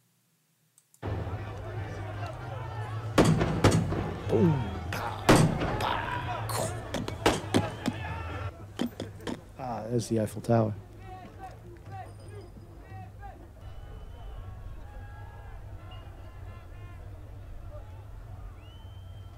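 A crowd clamours and shouts.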